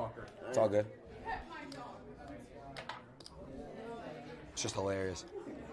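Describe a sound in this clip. Casino chips click on a table.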